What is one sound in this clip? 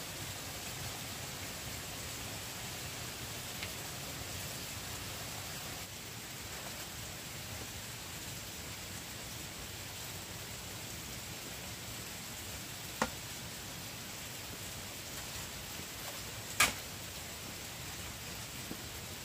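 Footsteps scuff softly on dirt ground.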